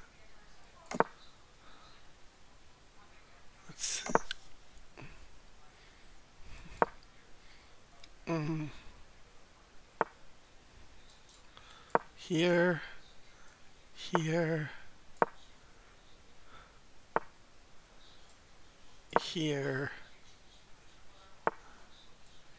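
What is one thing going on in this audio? Chess pieces click into place as moves are made, with short sharp knocks.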